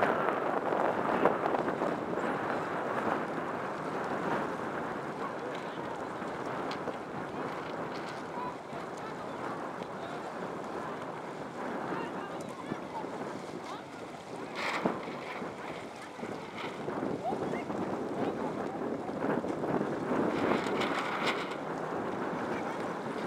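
Wind blows hard across open water.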